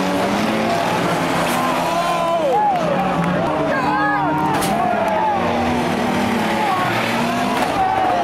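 A crowd of spectators cheers nearby.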